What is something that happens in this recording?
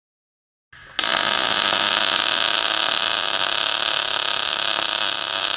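A welding arc crackles and spatters loudly.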